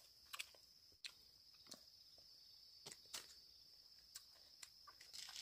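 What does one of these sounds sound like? A young woman chews food noisily, close by.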